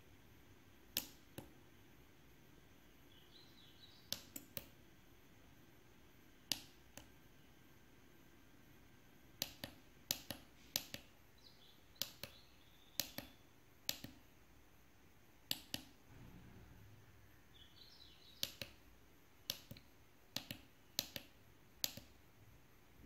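Small push buttons click sharply, one press after another.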